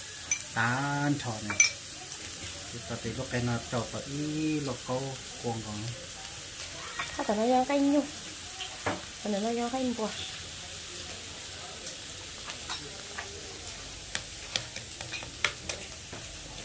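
Eggs tap and crack against the rim of a metal pot.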